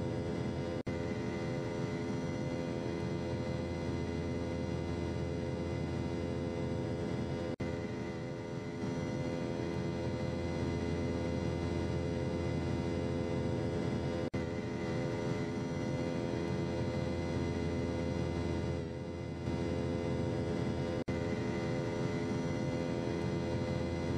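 The jet engines of a twin-jet airliner drone steadily in flight.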